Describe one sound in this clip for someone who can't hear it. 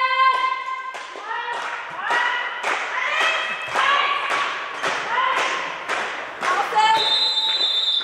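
A handball bounces on a hard floor.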